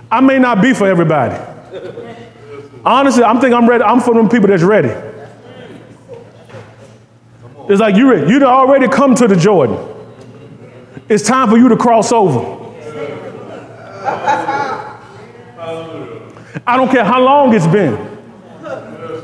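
A man speaks with animation to a room, in loud bursts with pauses.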